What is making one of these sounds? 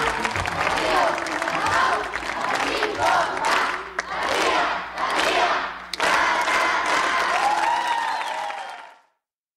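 A young woman speaks excitedly into a microphone.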